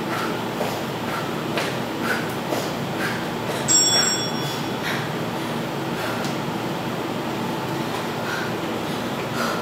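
Sneakers thump lightly on a hard floor in a quick, steady rhythm.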